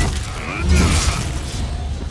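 A heavy axe strikes with a loud thud.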